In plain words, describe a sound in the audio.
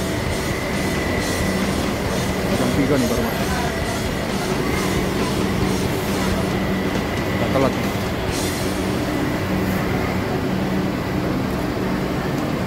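A bus engine idles with a steady low hum.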